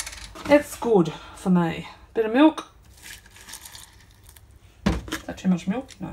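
Milk pours into a bowl of cereal.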